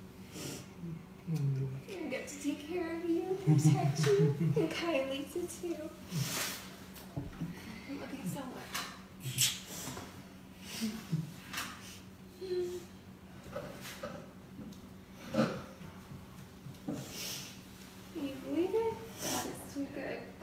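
A young woman speaks emotionally, close by.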